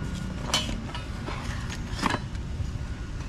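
A metal shock absorber knocks and clunks as it is lifted from a cardboard box.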